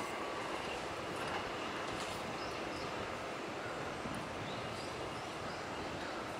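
A train rumbles steadily past close by.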